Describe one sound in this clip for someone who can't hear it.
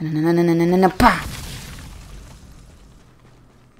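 An explosion bursts and rumbles away.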